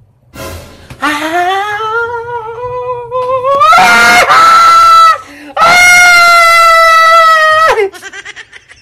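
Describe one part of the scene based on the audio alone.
A man close to a microphone squeals and screams excitedly, in long high-pitched shrieks.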